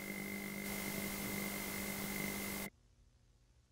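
Television static hisses loudly.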